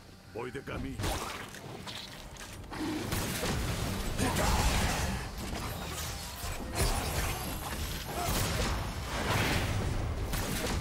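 Magic spells whoosh and blast in a fight.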